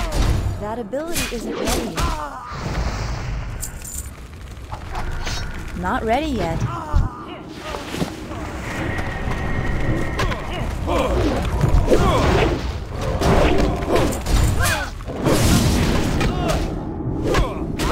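Weapons clash and strike in a close fight.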